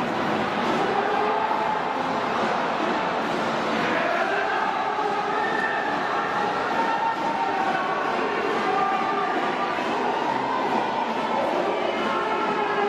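A large crowd chants and cheers steadily in a big echoing stadium.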